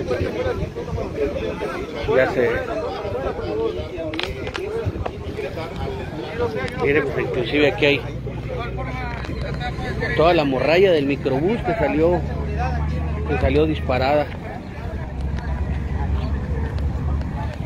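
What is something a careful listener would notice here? Several men and women talk nearby outdoors.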